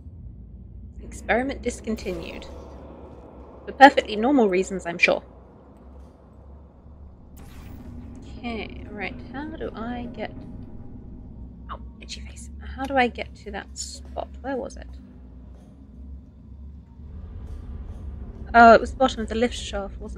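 A woman talks with animation into a nearby microphone.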